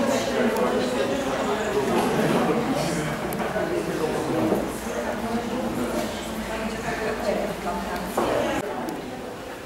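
A group of adults chat in the background.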